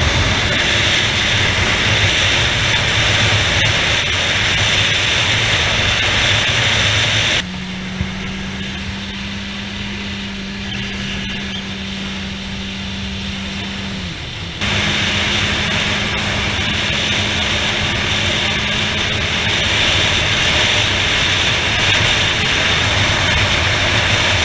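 Wind roars loudly past a moving motorcycle.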